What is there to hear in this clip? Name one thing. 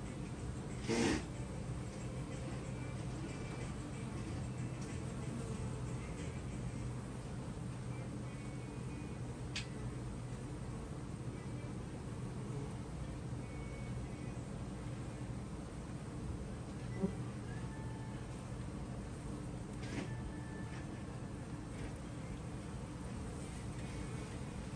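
Bees buzz steadily close by outdoors.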